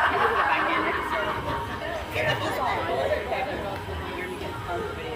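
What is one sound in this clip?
People chatter and call out nearby outdoors.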